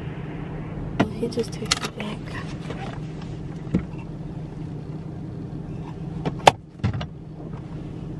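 Things knock and rustle inside a car.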